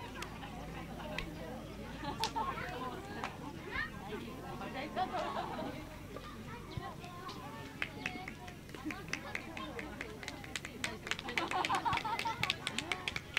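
Children's voices call and chatter at a distance outdoors.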